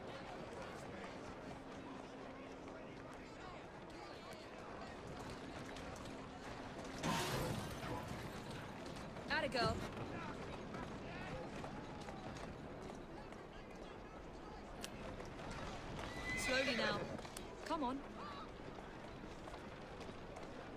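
Horse hooves clop on cobblestones.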